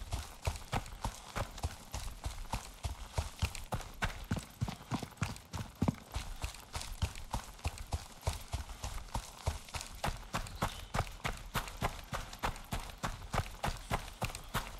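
Footsteps crunch quickly and steadily over grass and gravel.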